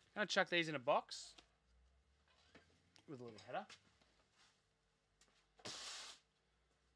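Card packs rustle and crinkle as they are handled.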